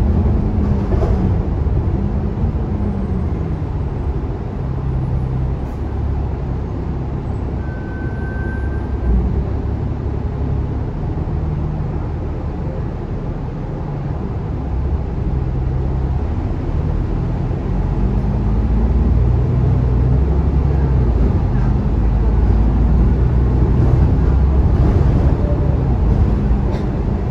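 A bus engine rumbles low, idling and then revving louder as the bus pulls away.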